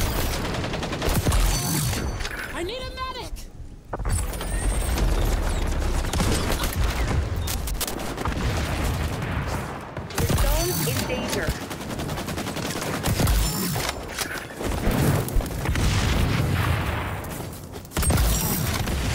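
A man talks with animation into a headset microphone.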